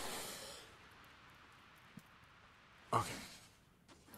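A large insect creature hisses and chitters nearby.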